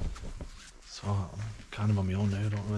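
A man talks close to the microphone.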